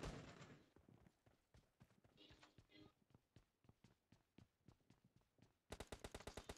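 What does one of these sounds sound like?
Boots run on concrete.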